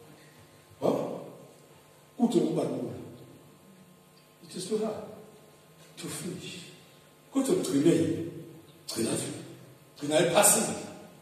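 A man preaches loudly and forcefully into a microphone in an echoing hall, in short bursts with pauses.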